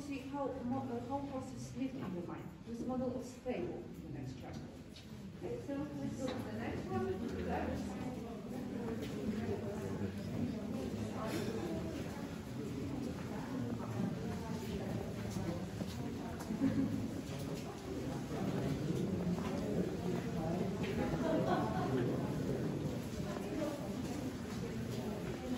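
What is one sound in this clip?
A crowd of adult men and women chatters nearby in an echoing space.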